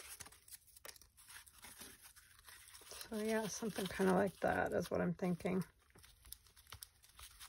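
A sheet of cardboard rustles softly as hands press it down.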